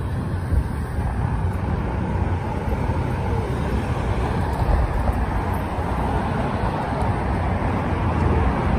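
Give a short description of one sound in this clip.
Cars drive past on pavement.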